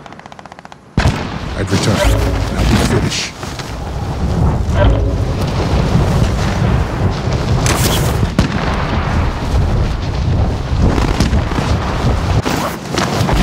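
Wind rushes loudly past during a long fall through the air.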